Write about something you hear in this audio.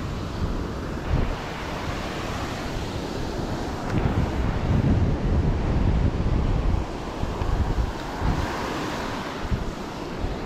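Waves wash onto a sandy shore.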